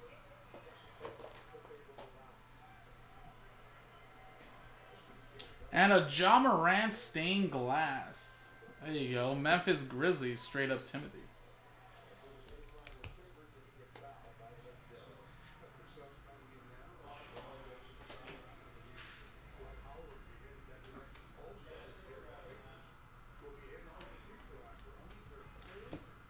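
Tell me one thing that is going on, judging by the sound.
Cards shuffle and rustle between hands.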